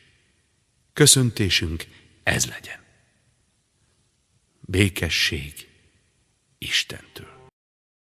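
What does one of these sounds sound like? A man speaks solemnly in short phrases, echoing in a large hall.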